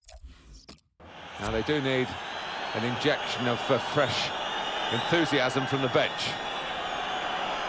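A large stadium crowd murmurs and cheers.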